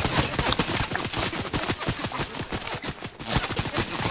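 A pickaxe swishes through the air.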